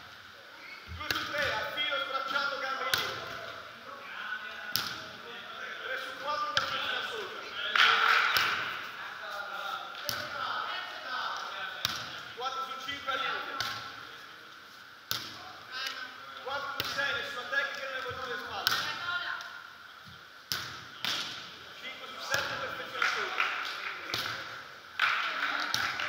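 A volleyball is struck with sharp slaps, again and again.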